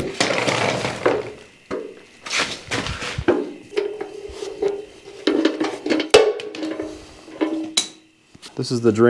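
A heavy metal housing scrapes and thumps on the floor.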